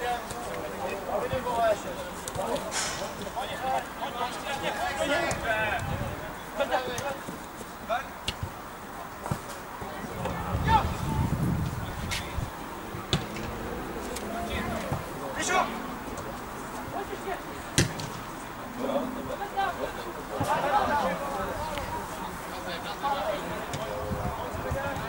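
Young men shout to each other from a distance outdoors.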